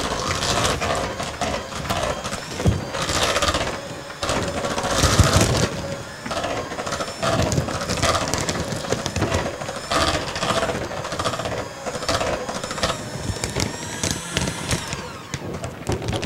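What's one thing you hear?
An electric hand mixer whirs, beating cream cheese in a plastic bowl.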